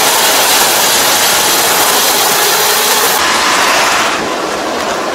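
A combine harvester engine roars loudly close by.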